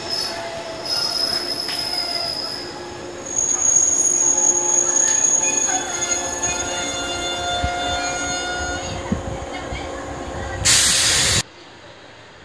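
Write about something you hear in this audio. Train wheels squeal with high, drawn-out whines.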